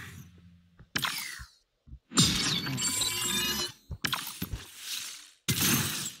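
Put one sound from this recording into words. Short electronic chimes and whooshes play in bursts.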